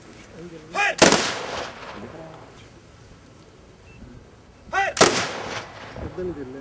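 A volley of rifle shots cracks loudly outdoors and echoes.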